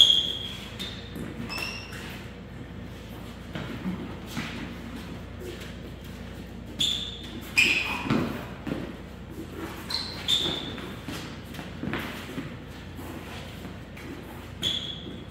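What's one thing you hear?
Shoes thump and scuff on a wooden floor.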